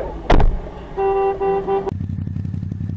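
A car horn honks.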